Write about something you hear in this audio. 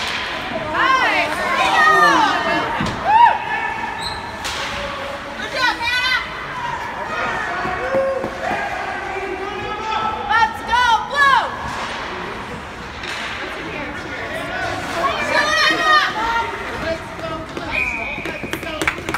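Ice skates scrape and screech across the ice in a large echoing rink.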